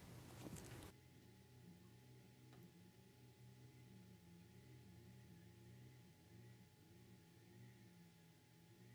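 Oil glugs from a bottle into a plastic tub.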